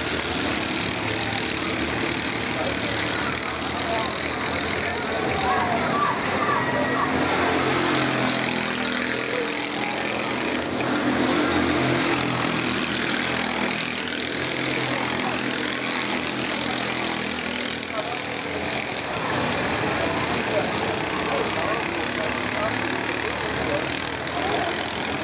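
A go-kart engine buzzes and whines as the kart races around the track.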